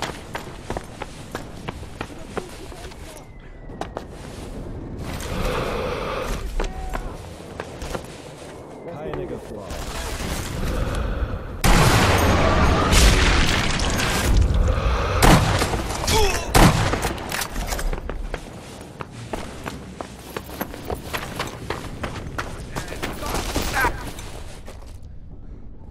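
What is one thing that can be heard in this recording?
Footsteps crunch quickly over rubble.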